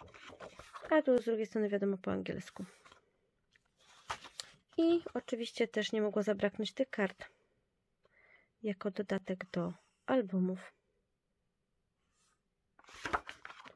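Sheets of paper rustle and crinkle as hands handle them.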